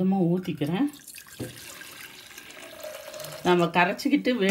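Liquid pours into a metal cup with a splashing trickle.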